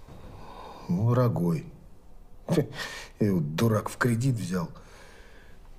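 A woman answers quietly and calmly nearby.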